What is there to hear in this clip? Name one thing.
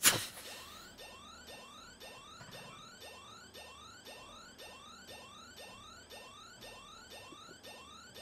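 A video game plays a quick run of rising electronic chimes.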